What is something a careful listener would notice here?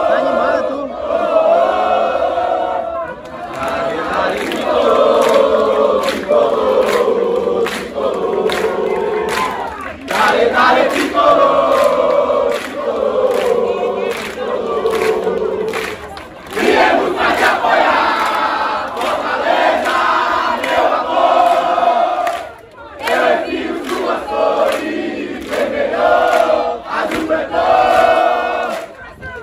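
A large crowd of football supporters chants and sings in unison outdoors.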